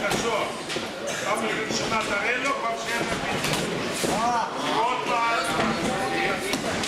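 Men talk loudly nearby in a large echoing hall.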